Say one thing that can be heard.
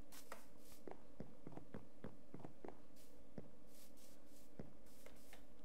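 Footsteps thud softly on grass and wooden planks.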